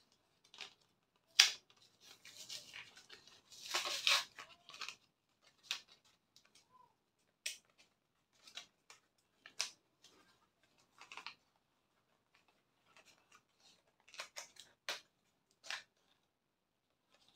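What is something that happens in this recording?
A plastic pencil clicks and taps softly as it is handled.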